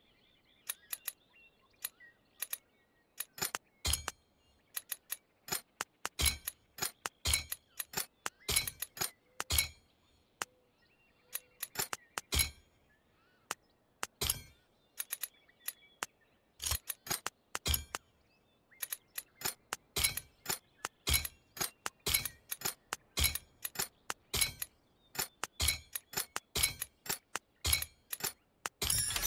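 Short interface clicks sound in quick bursts.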